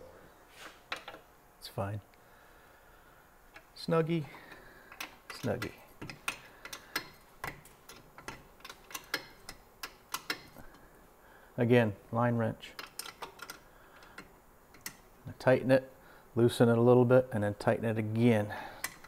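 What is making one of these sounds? Metal tools clink against a car's brake parts.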